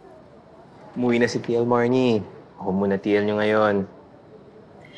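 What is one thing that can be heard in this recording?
A man speaks nearby in a low, firm voice.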